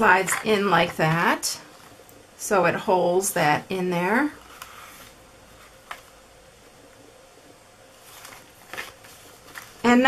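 A paper card rustles and taps softly as it is handled.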